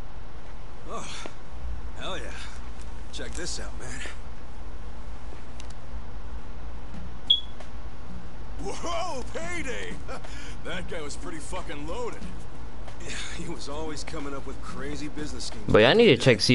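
A young man talks and exclaims close to a microphone.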